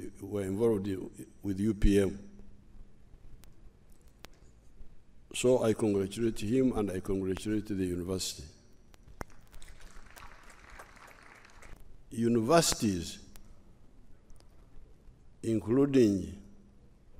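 An elderly man speaks calmly and slowly into a microphone, in bursts with pauses.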